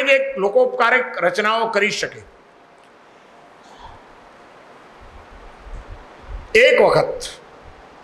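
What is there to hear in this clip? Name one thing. An elderly man speaks with animation into a microphone over a loudspeaker.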